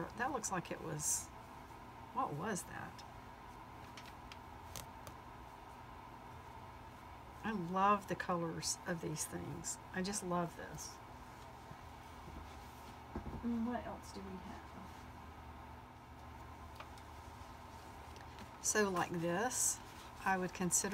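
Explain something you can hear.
Cloth rustles and crinkles as hands handle it.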